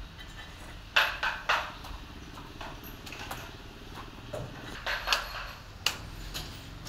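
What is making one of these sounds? Metal clanks sharply a few times.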